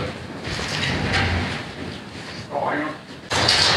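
A large plastic sheet rustles and crinkles.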